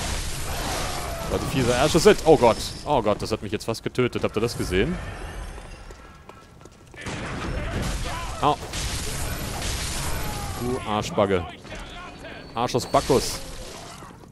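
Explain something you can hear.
Blades slash and strike with wet, heavy hits.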